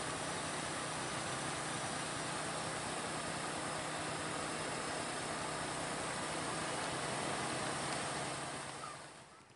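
A heavy truck's diesel engine rumbles steadily close by.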